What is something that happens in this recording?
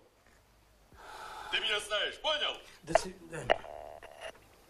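A middle-aged man speaks into a telephone in a low voice.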